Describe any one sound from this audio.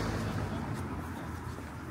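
Footsteps pass by on a pavement outdoors.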